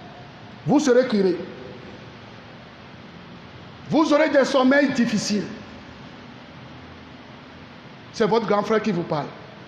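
A man sings out in short phrases through a microphone.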